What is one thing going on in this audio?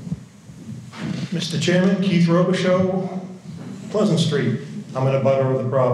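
A man at a podium speaks into a microphone in an echoing hall.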